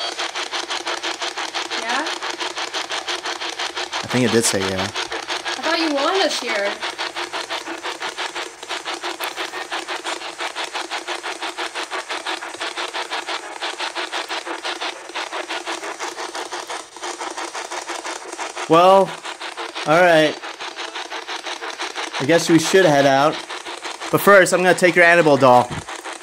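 A small radio hisses with static that pulses quickly and steadily as it scans through stations.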